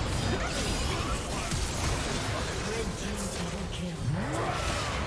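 Spell effects crackle and burst in a video game fight.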